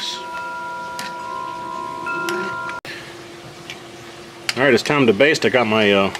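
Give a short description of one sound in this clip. A spoon scrapes and clinks against a bowl of sauce.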